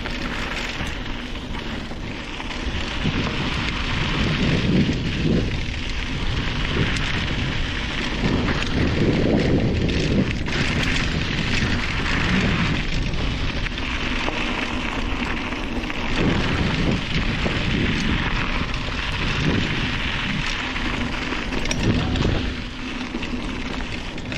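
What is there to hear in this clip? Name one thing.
Bicycle tyres crunch steadily over a gravel dirt path.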